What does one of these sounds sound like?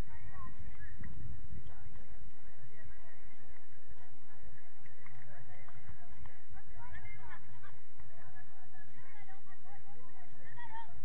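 Young players call out to each other in the distance across an open field.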